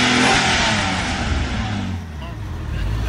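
A sports car engine idles with a deep rumble.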